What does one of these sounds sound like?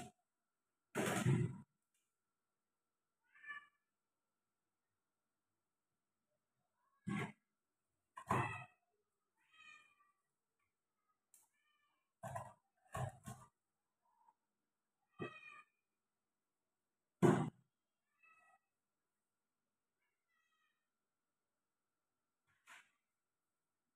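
Dishes knock and clink at a sink now and then.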